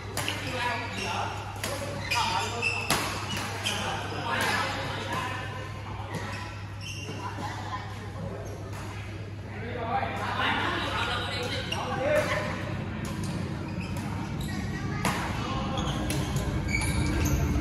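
Badminton rackets smack shuttlecocks in a large echoing hall.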